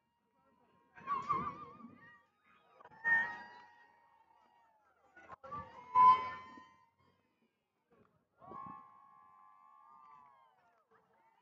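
Young women shout and cheer from across an open field.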